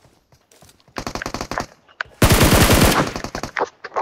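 Footsteps thud quickly on a hard roof.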